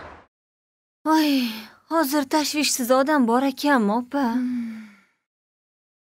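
A young woman speaks close by in a pained, wavering voice.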